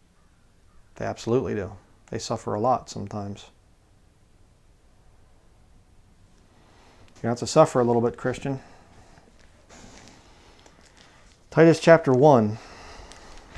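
A man speaks calmly and closely into a microphone, in short phrases with pauses.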